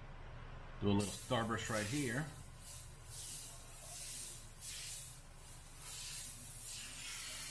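An airbrush hisses as it sprays in short bursts.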